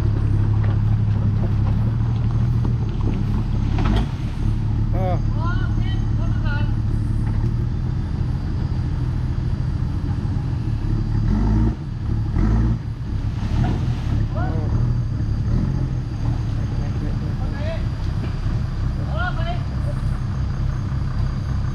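Tyres churn and spin in mud.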